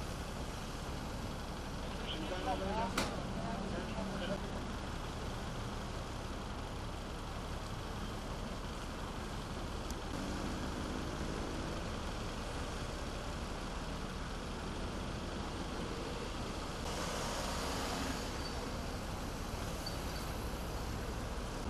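Busy road traffic rumbles steadily nearby.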